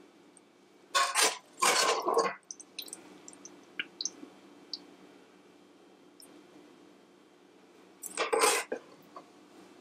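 A metal spoon scrapes and clinks against a glass dish.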